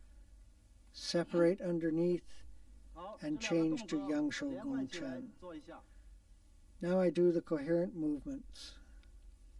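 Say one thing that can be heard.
A middle-aged man speaks calmly and explains, as if instructing.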